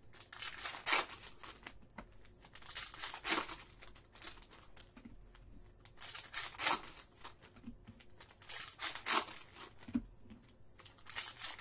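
Foil card wrappers crinkle and tear as they are opened.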